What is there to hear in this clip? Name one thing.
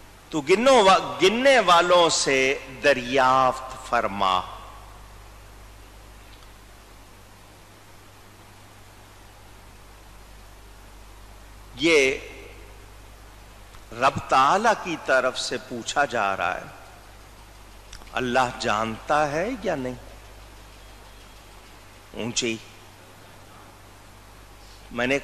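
A middle-aged man speaks with animation into a microphone, pausing often.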